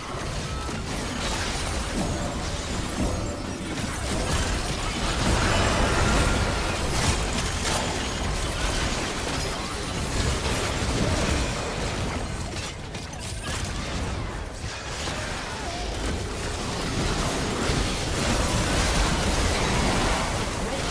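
Game characters clash with hits and blasts.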